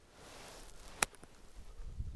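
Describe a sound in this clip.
A golf club strikes a ball with a crisp click.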